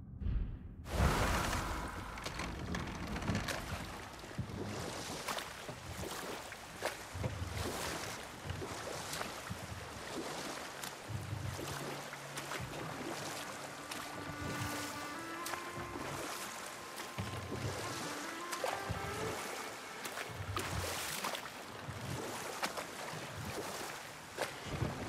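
Oars splash and paddle through water with a steady rhythm.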